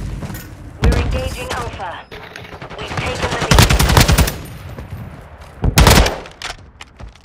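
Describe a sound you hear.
Gunfire cracks in short, loud bursts.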